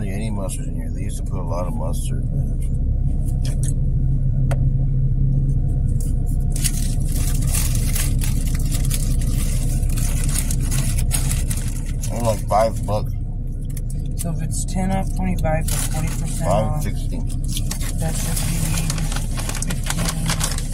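A paper wrapper rustles and crinkles.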